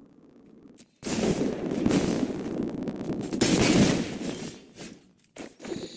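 Electric crackling and booming rings out from a lightning spell in a game.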